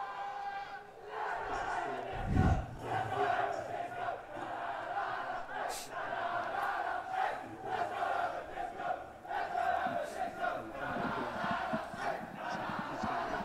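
A group of young men cheer and shout loudly.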